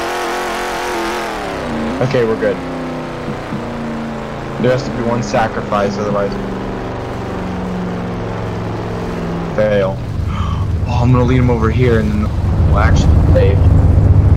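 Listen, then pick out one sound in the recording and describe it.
A car engine hums steadily and then rumbles louder as the car drives.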